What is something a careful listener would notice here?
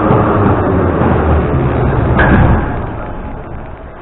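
Subway doors slide open.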